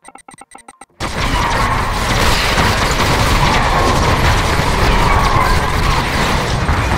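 Many laser beams buzz and crackle in a steady, loud barrage.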